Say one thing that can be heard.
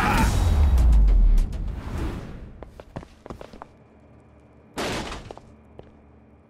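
A man stomps and kicks a fallen man with heavy thuds.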